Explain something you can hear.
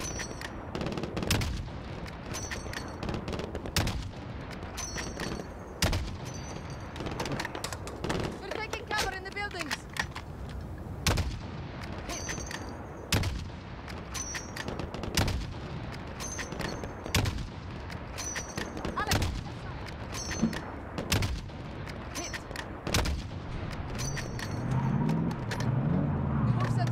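Sniper rifle shots crack out one after another, about every two seconds.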